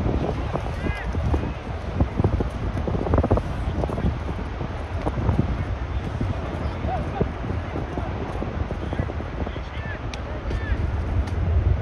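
Distant players call out to each other during a football match.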